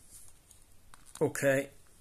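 A remote control button clicks softly.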